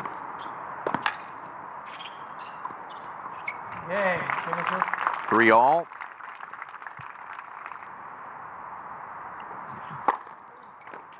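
A tennis ball is struck sharply with a racket, again and again.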